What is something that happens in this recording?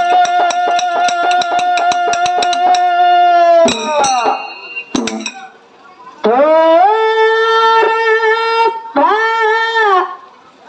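A reed wind instrument plays a loud, held melody up close, with short pauses between phrases.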